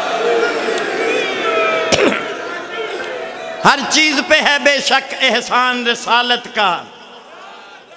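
An elderly man recites through a microphone.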